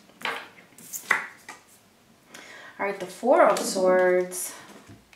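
Playing cards slide and tap on a wooden table.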